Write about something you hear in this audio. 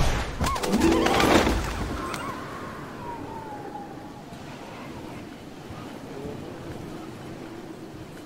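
Wind rushes past a glider sailing through the air.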